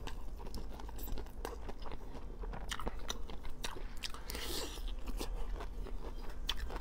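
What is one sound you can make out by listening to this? A young man chews food wetly and noisily, close to a microphone.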